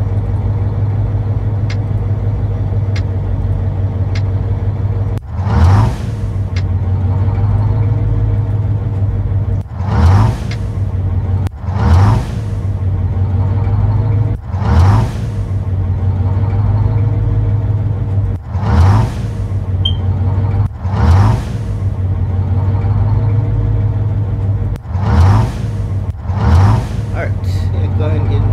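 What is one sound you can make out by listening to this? A drilling machine rumbles steadily.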